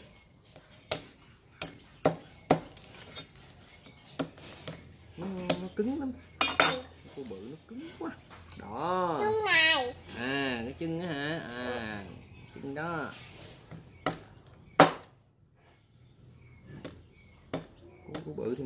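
A cleaver knocks sharply on a wooden chopping board.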